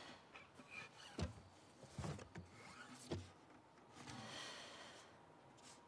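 A guitar is lifted out of its case with soft knocks.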